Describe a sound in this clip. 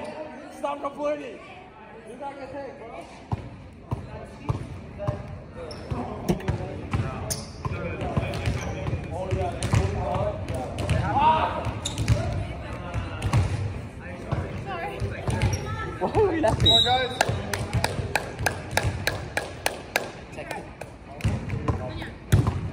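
A volleyball thumps off hands and arms.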